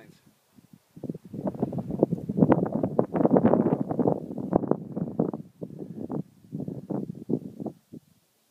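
Wind gusts and rumbles loudly outdoors.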